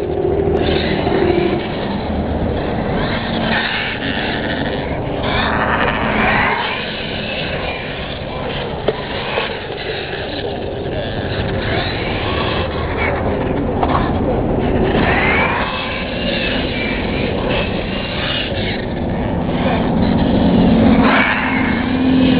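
A small electric motor of a toy car whines and revs up and down.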